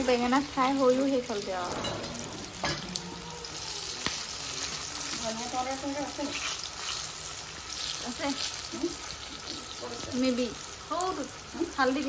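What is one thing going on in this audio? Oil sizzles steadily in a frying pan.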